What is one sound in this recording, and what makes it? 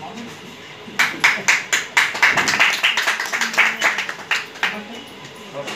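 A group of people clap their hands.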